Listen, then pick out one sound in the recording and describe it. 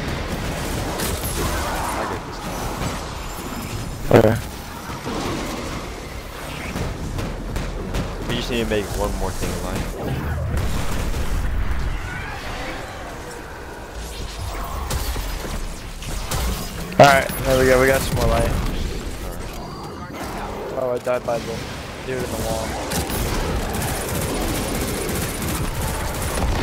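Guns fire in short bursts amid loud blasts.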